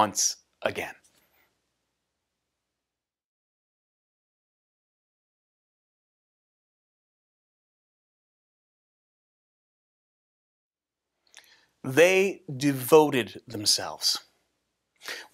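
A man speaks to the listener close to a microphone, with animation.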